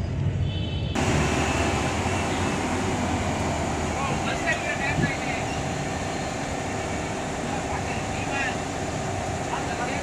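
Traffic hums and rolls past on a busy street.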